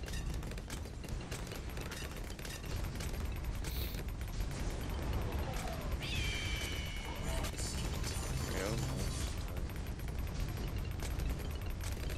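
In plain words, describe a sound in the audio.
Game explosions and popping effects crackle rapidly throughout.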